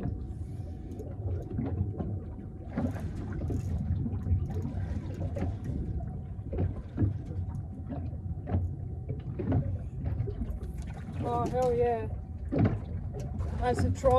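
Wind buffets and rumbles outdoors throughout.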